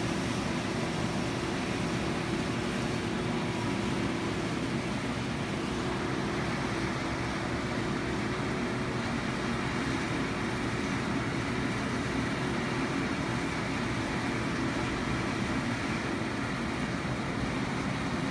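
A combine harvester's engine drones steadily nearby.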